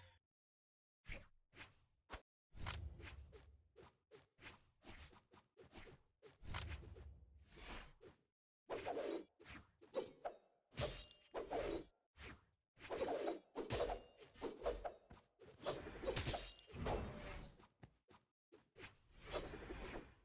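Weapon strikes and slashes crack and whoosh in a platform fighting game.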